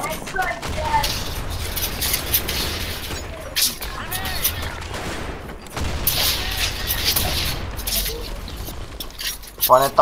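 Gunshots ring out nearby.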